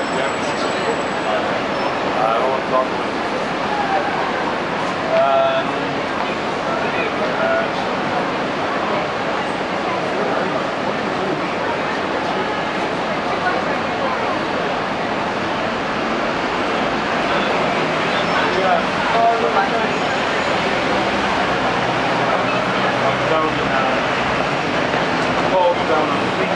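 Passers-by talk nearby, men and women.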